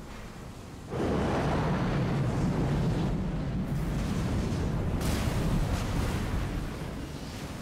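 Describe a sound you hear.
A large airship engine rumbles loudly.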